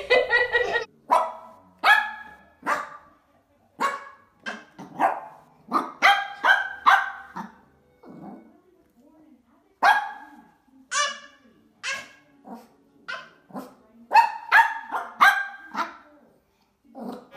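A small dog barks sharply, over and over.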